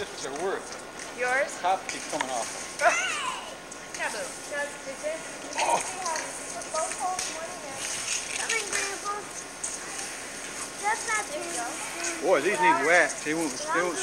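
A young child calls out excitedly nearby, outdoors.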